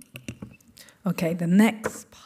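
A woman begins reading out into a microphone.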